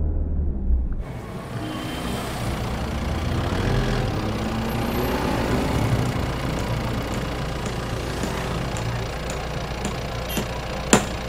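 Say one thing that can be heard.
Street traffic hums nearby.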